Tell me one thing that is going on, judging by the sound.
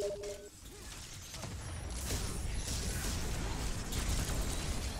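Explosions boom and burst in a fight.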